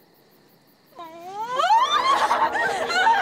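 A young woman screams loudly in terror.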